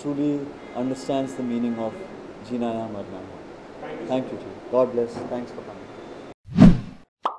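A man speaks calmly into microphones close by.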